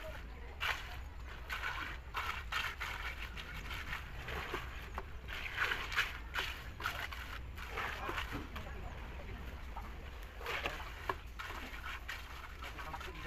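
Workers scrape and spread wet concrete with shovels.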